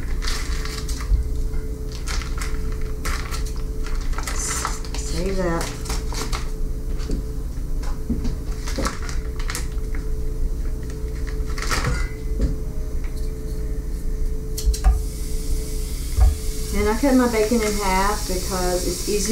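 Plastic packaging crinkles and rustles.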